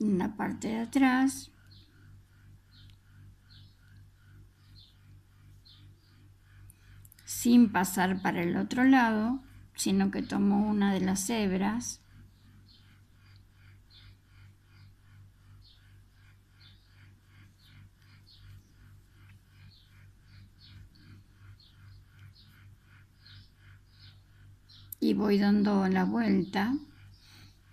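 A metal crochet hook clicks and rustles softly through yarn.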